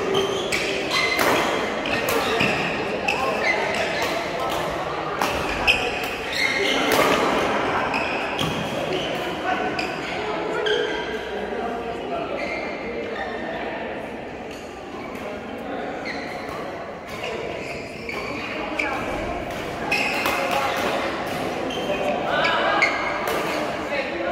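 Rackets strike a shuttlecock again and again in a large echoing hall.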